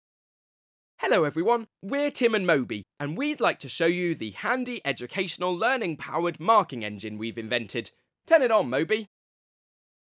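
A young man speaks clearly and with animation into a microphone.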